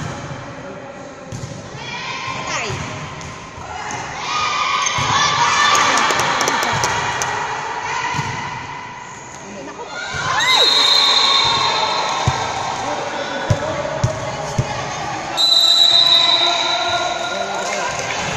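Young women shout and cheer in a large echoing gym.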